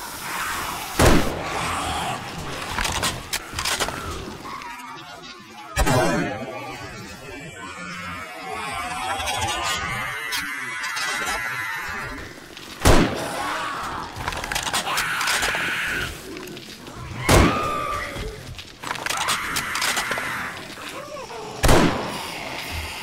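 Loud rifle shots crack with a short echo.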